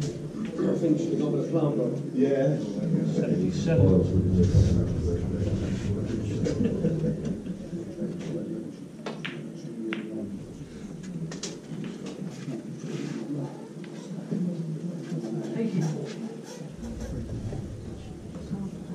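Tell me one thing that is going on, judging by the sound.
A crowd of adults murmurs quietly in a room.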